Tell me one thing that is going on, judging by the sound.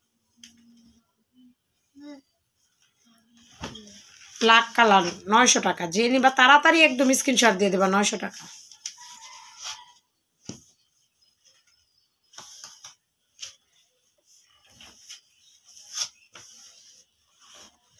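Cloth rustles softly as it is unfolded and moved.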